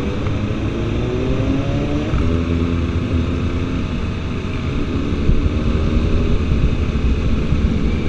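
Motorcycle engines rumble and whine close by, with one engine's pitch rising and falling as it revs.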